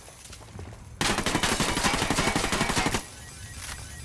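Glass and metal shatter as slot machines are hit by bullets.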